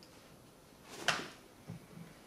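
A hand slaps sharply against a body.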